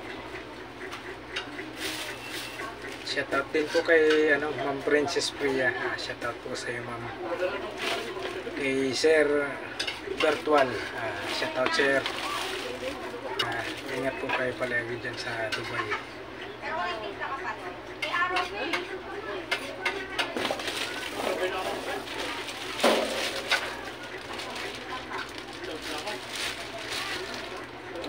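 A man talks calmly and close by, explaining.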